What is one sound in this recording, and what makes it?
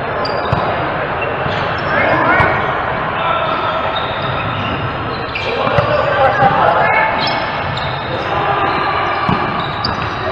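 A volleyball is struck with a hand.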